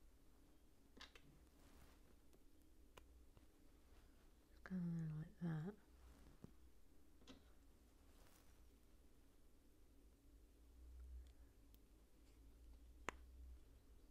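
Small plastic pieces click and snap together.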